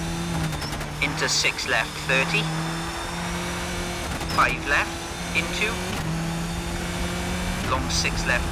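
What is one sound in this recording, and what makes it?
A rally car engine drones steadily at high revs.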